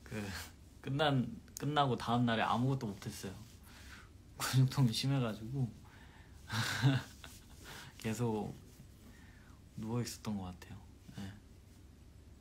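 A young man talks softly and cheerfully close by, with small laughs.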